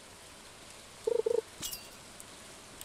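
A fishing rod casts with a short electronic whoosh.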